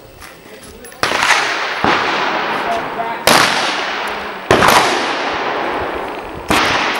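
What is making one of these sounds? Rifle shots crack loudly outdoors, each ringing out and fading slowly.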